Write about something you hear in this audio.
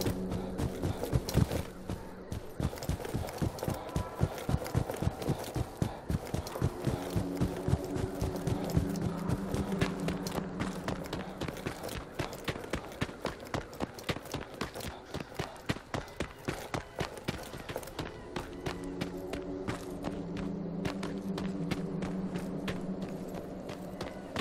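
Footsteps crunch steadily over dry ground.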